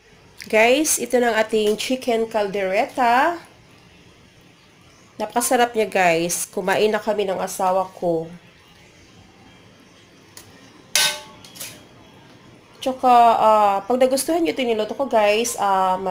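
A serving spoon scrapes and clinks against a metal tray.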